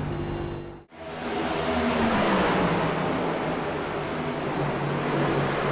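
Several race cars roar around a track.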